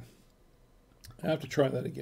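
Wine pours from a bottle into a glass.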